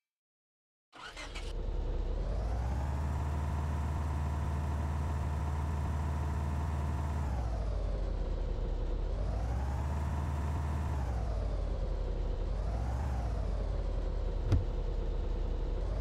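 A car engine hums steadily, now and then revving up and settling back down.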